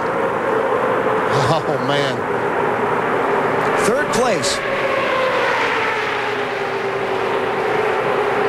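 A pack of race car engines roars steadily.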